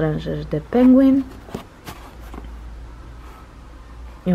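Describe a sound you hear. A paperback book rustles as it is turned over in a hand.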